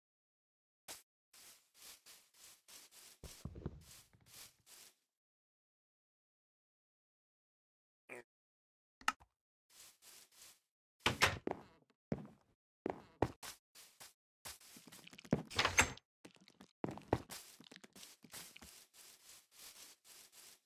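Footsteps thud softly on grass and dirt.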